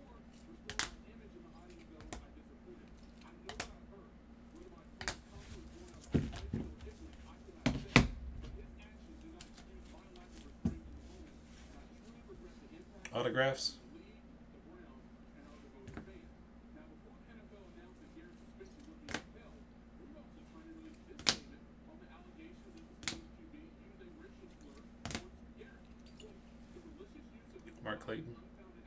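Hard plastic card cases click and tap as they are handled.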